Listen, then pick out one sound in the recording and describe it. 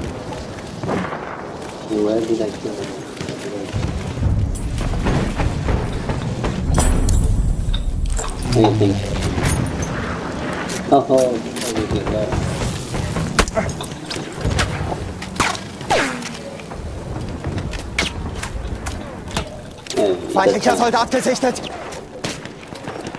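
Rifle shots crack and echo across open ground.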